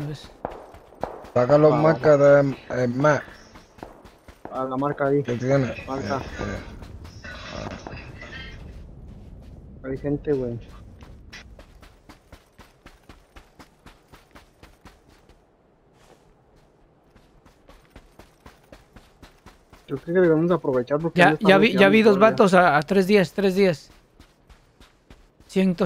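Footsteps run quickly across sand.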